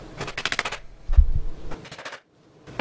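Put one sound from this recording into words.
A rubber mallet thumps on a wooden panel.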